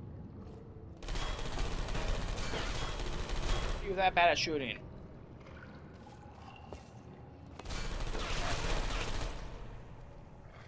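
A portal opens with a humming whoosh.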